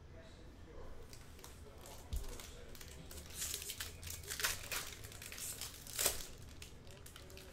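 A foil wrapper crinkles and tears open.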